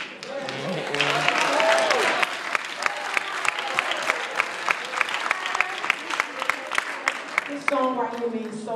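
A congregation claps hands in a steady rhythm.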